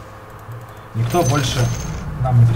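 A magical spell bursts with a bright whoosh.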